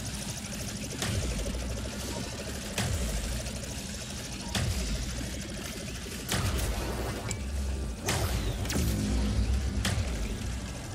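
Bright sparkling effects burst out every couple of seconds.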